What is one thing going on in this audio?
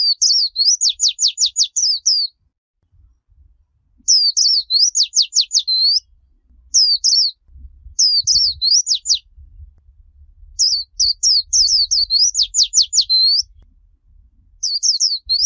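A small bird chirps in quick, high bursts close by.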